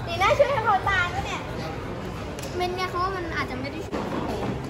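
A young girl laughs and squeals excitedly up close.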